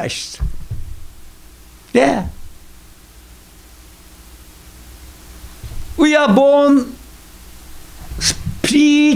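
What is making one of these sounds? An elderly man speaks expressively into a microphone, with long pauses.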